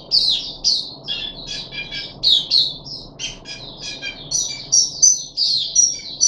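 A small bird sings a fast, lively run of high chirps and trills close by.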